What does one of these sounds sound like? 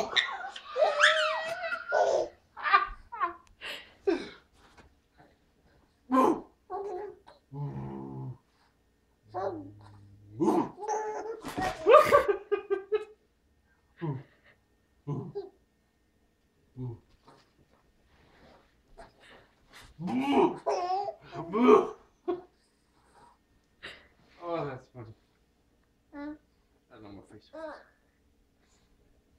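A baby babbles and squeals nearby.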